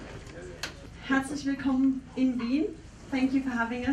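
A young woman speaks over a microphone with animation.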